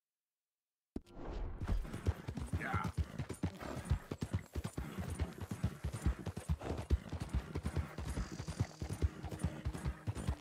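A horse gallops, hooves pounding on a dirt track.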